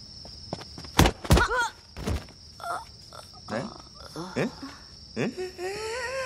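A man shouts excitedly.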